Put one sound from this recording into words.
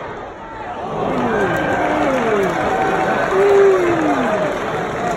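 A crowd roars loudly.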